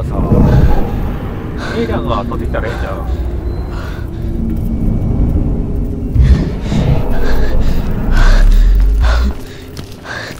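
A loud rumbling whoosh roars and then cuts off.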